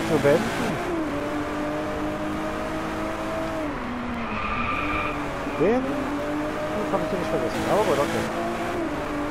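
A sports car engine roars steadily, rising and falling in pitch as gears shift.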